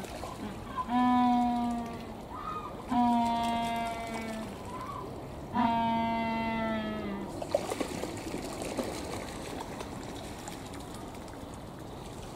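Water splashes as penguins swim.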